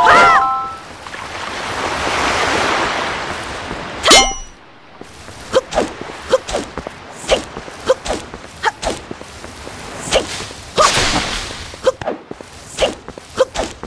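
A sword swishes through the air.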